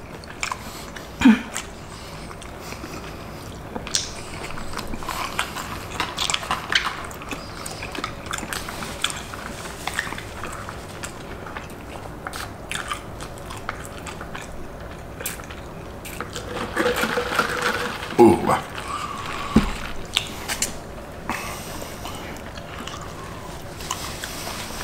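Two people chew and slurp food close by.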